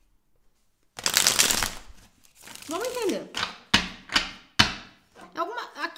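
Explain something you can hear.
Cards riffle and slap together as they are shuffled.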